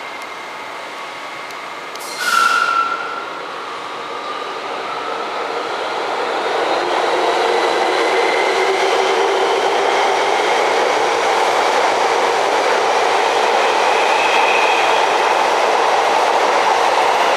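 A train rolls into a station, its rumble and whine growing louder as it passes close by.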